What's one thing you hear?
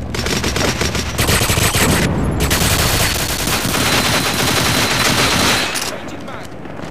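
Rapid gunshots ring out in bursts.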